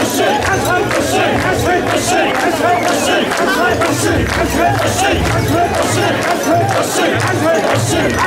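A large crowd of men chants loudly and rhythmically in unison outdoors.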